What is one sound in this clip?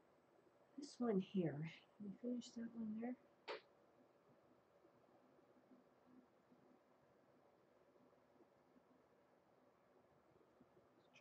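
A palette knife scrapes softly across a canvas.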